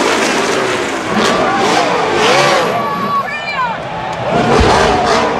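A race car's tyres squeal as it spins on the spot.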